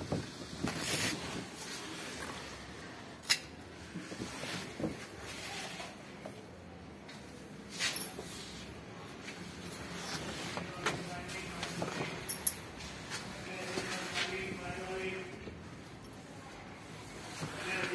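Large leaves rustle and brush close by.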